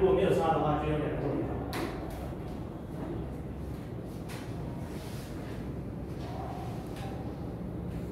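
A young man speaks calmly at a distance in a reverberant room.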